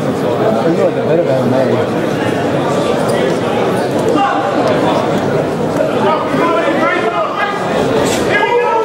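A crowd of spectators talks and shouts in a large echoing hall.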